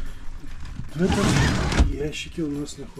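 A roller shutter rattles as it slides open.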